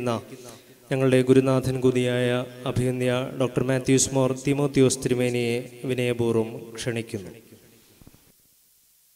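A man chants loudly into a microphone.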